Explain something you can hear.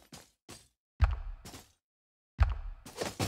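A heavy blow lands with a deep thud.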